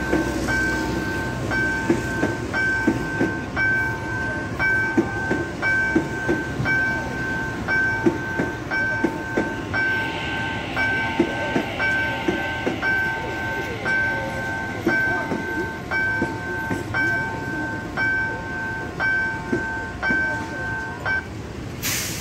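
A train's warning signal beeps in a fast, steady rhythm.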